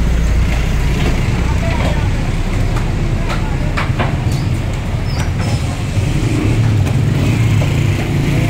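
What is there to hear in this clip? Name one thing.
A knife chops and scrapes through raw meat with sharp knocks.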